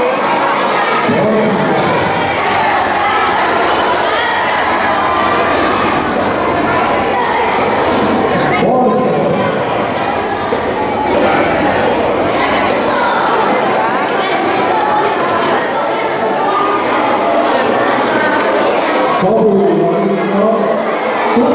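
Children chatter in an echoing hall.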